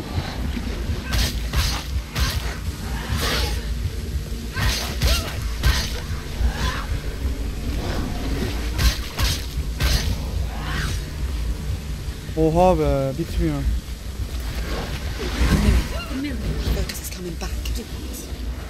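Swords clash and slash in quick, sharp strikes.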